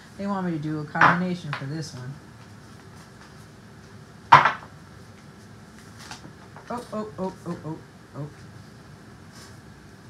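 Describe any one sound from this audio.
Playing cards are shuffled and riffled by hand.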